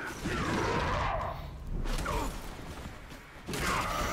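A heavy body thuds onto the ground.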